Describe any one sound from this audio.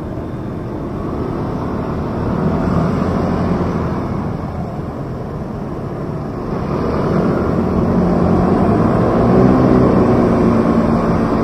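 Scooter engines rev loudly as traffic pulls away.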